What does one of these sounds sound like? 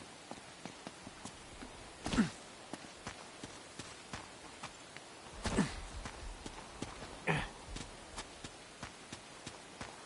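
Footsteps run quickly over gravel and boards.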